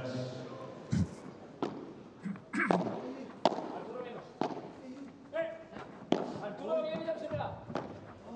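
A padel ball is struck sharply with paddles, hit after hit.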